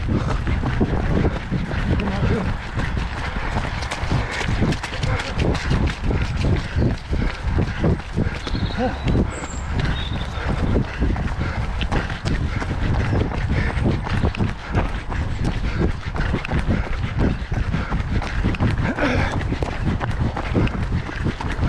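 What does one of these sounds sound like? Running footsteps thud steadily on a dirt path.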